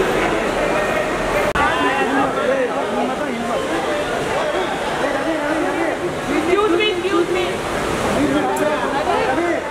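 A crowd of men talk and murmur nearby in an echoing space.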